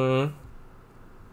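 A man speaks briefly, close to a microphone.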